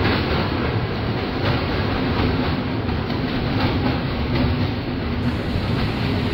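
An electric multiple-unit train rumbles along the track with a steady motor hum.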